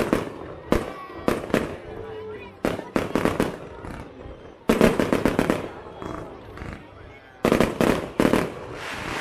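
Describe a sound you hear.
Firework sparks crackle and fizzle after each burst.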